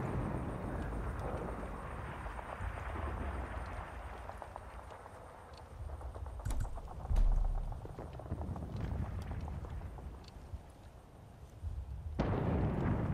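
Footsteps crunch over loose rocks and gravel.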